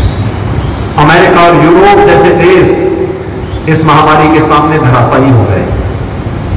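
A man speaks calmly into a microphone in a room with some echo.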